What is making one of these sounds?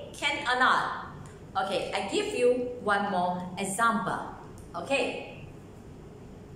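A middle-aged woman speaks clearly and with animation close by.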